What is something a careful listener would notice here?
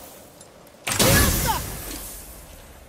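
An axe whooshes through the air and strikes with a heavy thud.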